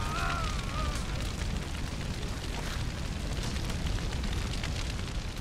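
A fire roars and crackles close by.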